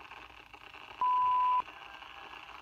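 A short steady electronic tone sounds from a television.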